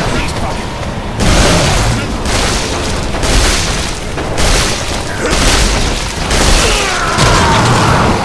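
Heavy metal crunches and clangs.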